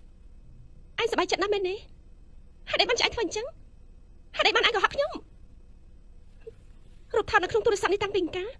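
Another young woman answers, complaining and upset, close by.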